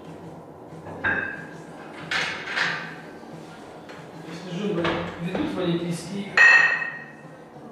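Metal weight plates clank against each other in a room with some echo.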